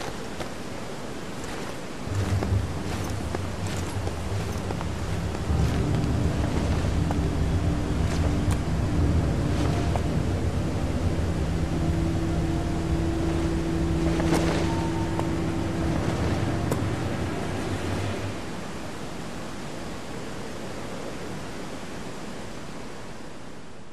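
A waterfall roars steadily in the distance.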